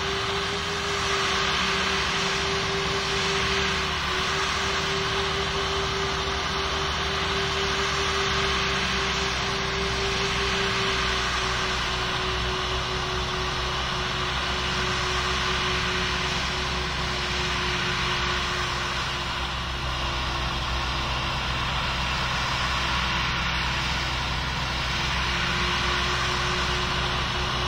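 A jet airliner's engines whine and roar steadily as it taxis.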